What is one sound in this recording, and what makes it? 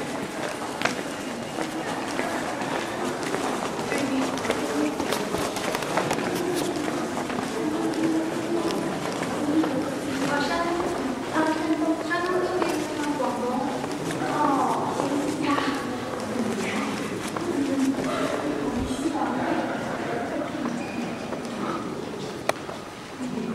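A man talks nearby in a large echoing hall.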